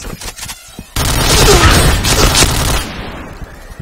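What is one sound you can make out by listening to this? Submachine guns fire rapid bursts close by.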